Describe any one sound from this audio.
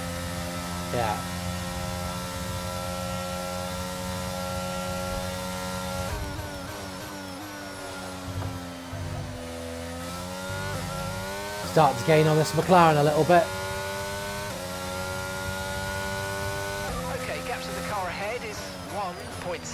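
A racing car engine whines at high revs, rising and falling as it shifts gears.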